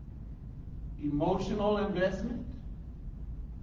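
A man speaks briefly in an echoing room.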